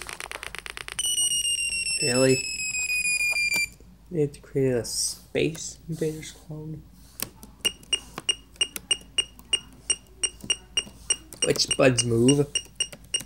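A computer game plays rapid, repeating electronic bleeps.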